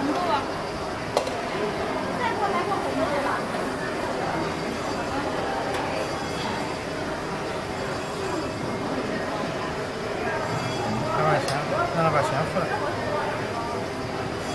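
Pancake batter pours onto a hot metal griddle.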